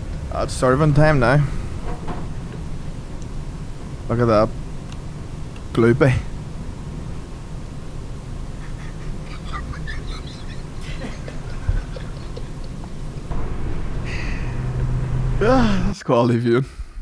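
Men talk and laugh through microphones.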